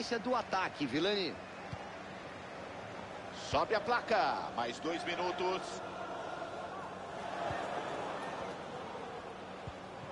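A large stadium crowd murmurs and cheers steadily, swelling a little now and then.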